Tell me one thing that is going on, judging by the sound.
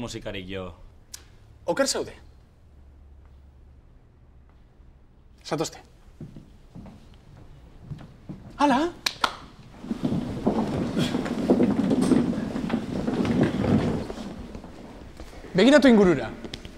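A young man speaks with animation, in short bursts.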